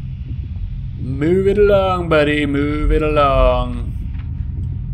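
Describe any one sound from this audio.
A man calls out in a long, drawn-out, wavering voice close to a microphone.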